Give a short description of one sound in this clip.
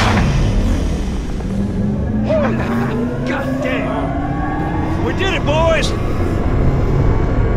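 A large turbine hums and rises steadily in pitch as it spins up.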